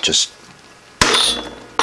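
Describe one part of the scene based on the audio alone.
A mallet strikes a metal punch with a sharp knock.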